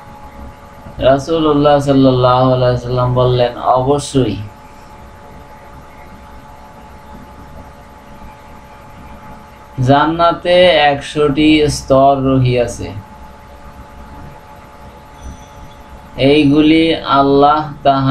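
A man sings in slow, drawn-out phrases close to a microphone, with pauses between them.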